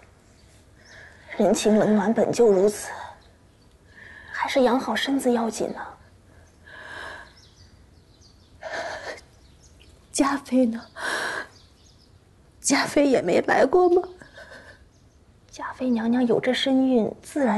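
A young woman speaks gently and soothingly, close by.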